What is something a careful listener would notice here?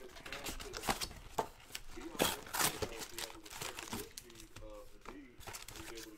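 Cardboard tears open.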